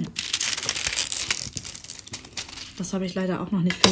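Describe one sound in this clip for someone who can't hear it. A plastic sheet crinkles and rustles.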